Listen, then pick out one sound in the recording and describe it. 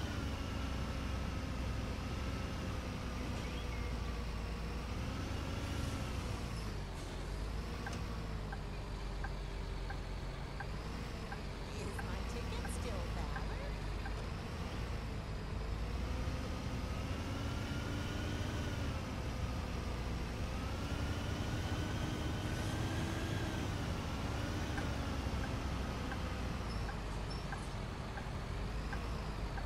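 A bus engine hums steadily, its pitch rising and falling as the bus speeds up and slows down.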